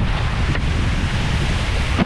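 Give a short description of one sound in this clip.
A wakeboard scrapes and thuds along a floating ramp.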